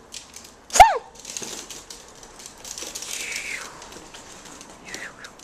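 Small dogs' claws patter and click on a hard floor.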